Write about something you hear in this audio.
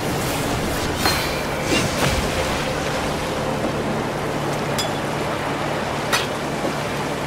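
Short game sound effects clink as items are moved around.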